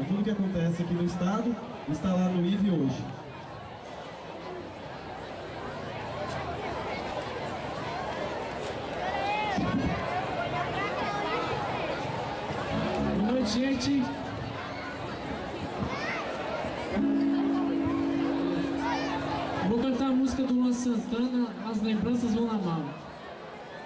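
A young man sings into a microphone, heard through a loudspeaker.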